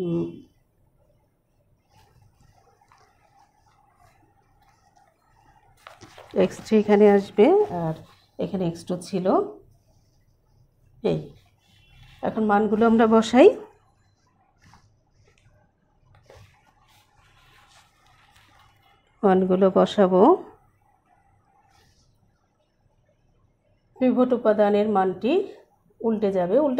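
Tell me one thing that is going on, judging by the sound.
A woman speaks calmly in short phrases, close by, with pauses between them.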